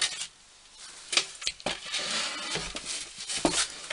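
A wooden board scrapes and bumps as it is moved.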